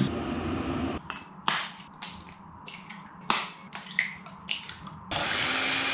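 An egg cracks against a bowl.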